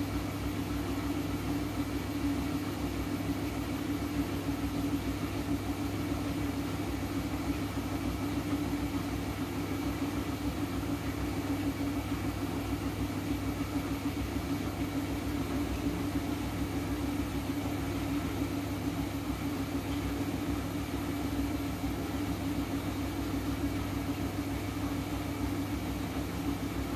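A washing machine drum spins with a steady hum.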